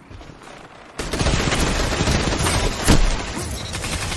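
A rapid-fire gun fires a burst of shots.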